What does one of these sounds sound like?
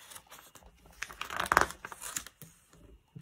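Thin paper pages rustle and flip as a book's page is turned.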